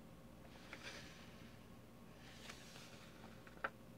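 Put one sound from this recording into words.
Paper pages rustle as a booklet is handled.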